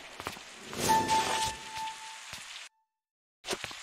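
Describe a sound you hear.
A grappling line fires with a sharp whoosh.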